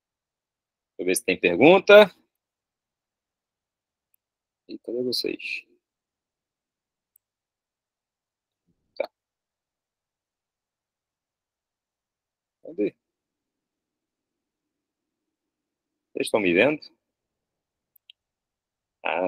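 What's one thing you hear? A young man speaks calmly in short bursts through a computer microphone, as if on an online call.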